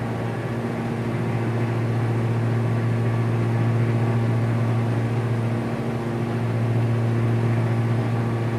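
A jet engine drones steadily with a low hum.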